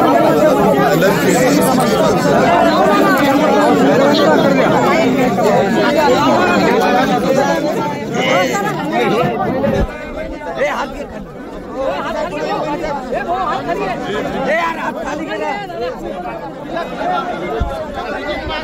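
A crowd of men talk over one another close by, outdoors.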